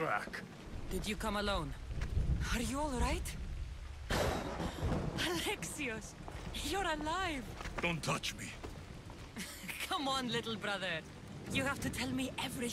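A young woman speaks warmly and with animation.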